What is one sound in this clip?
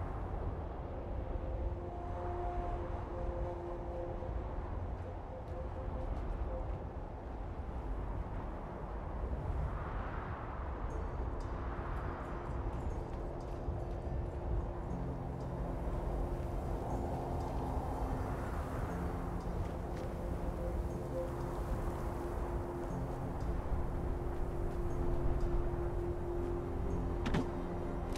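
Footsteps crunch over gravel and debris.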